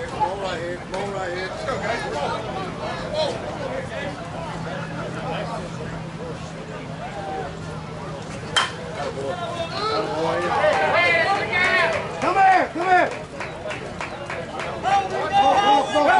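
Several men talk and call out nearby outdoors.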